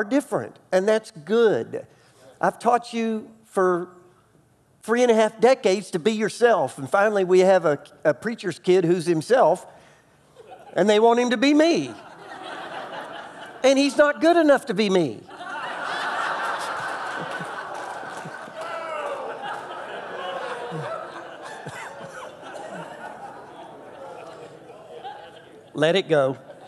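A middle-aged man speaks calmly and with animation through a microphone in a large hall.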